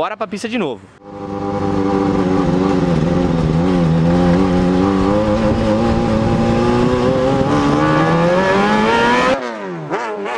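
A car engine revs and roars loudly from inside the car.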